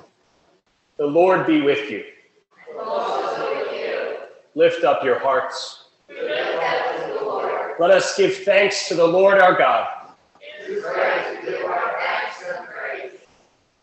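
A man speaks loudly and clearly through a microphone in an echoing hall.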